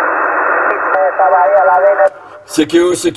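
A man's voice comes over the radio, distorted and crackling.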